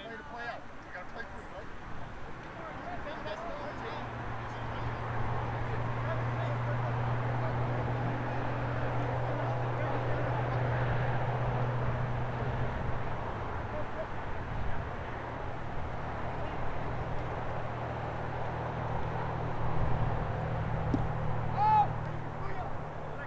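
Players kick a soccer ball on grass.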